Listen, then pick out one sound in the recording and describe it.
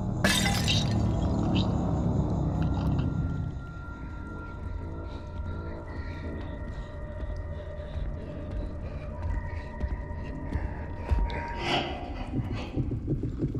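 Small footsteps patter on a tiled floor.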